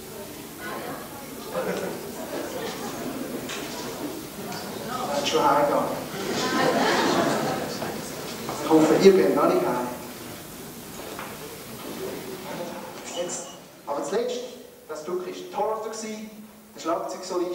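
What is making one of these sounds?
A crowd of people murmurs and talks in a large, echoing hall.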